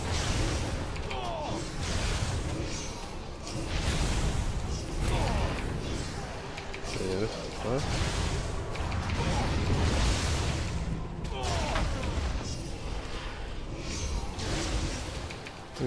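Lightning crackles and booms in bursts.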